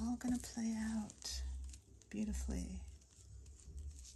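A gloved hand rubs over a smooth surface.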